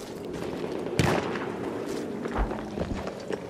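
A pistol fires a loud shot.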